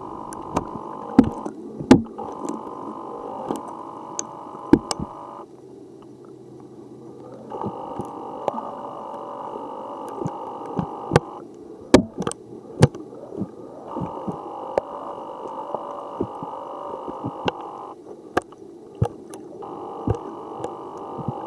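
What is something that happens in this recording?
Shoes tap and scrape on gravel underwater.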